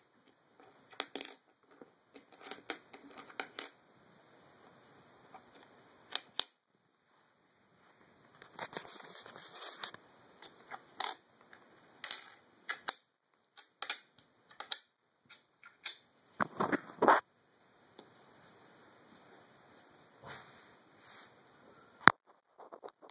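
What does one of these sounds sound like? Coins clink and slide on a wooden table.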